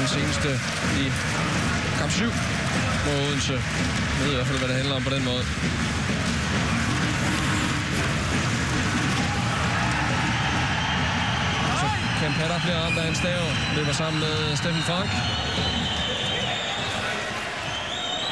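A crowd murmurs and cheers steadily in a large echoing arena.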